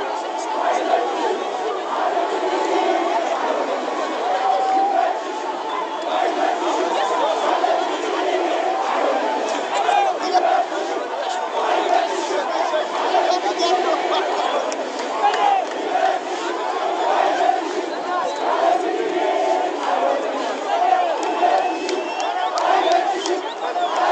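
A large crowd cheers and whistles.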